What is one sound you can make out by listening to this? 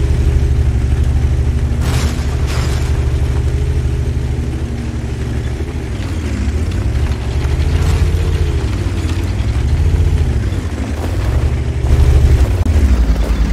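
A tank engine rumbles and revs as the tank drives over rubble.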